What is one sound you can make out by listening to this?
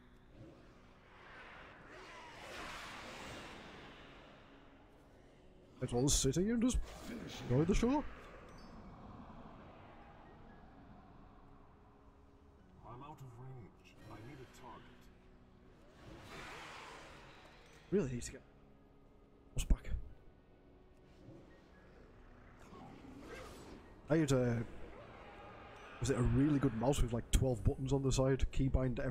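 Game fight effects whoosh and clash.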